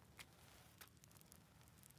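A fire crackles softly in a stove.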